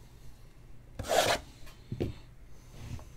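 A cardboard box rustles and scrapes as it is handled.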